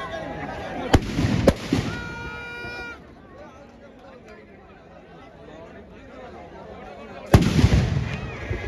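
Fireworks go off with loud bangs.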